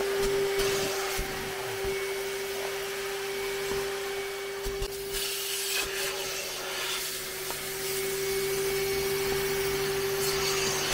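A vacuum cleaner drones steadily with a high hum.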